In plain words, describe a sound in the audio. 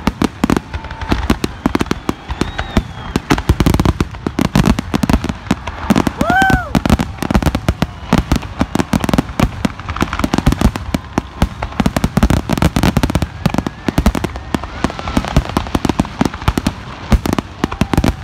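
Fireworks burst with rapid loud booms and crackles outdoors.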